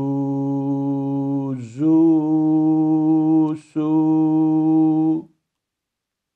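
A man chants drawn-out syllables slowly and clearly into a close microphone.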